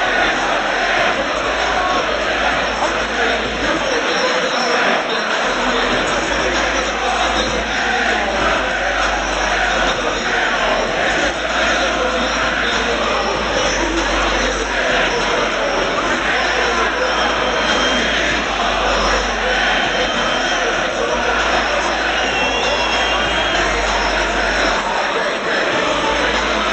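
A large crowd murmurs and chatters loudly in a big echoing stadium.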